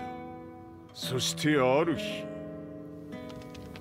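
An elderly man speaks slowly in a deep voice.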